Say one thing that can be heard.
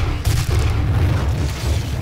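A fiery explosion bursts with a roar.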